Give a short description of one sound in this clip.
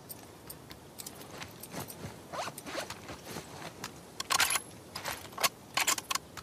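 A rifle clicks and rattles as it is readied.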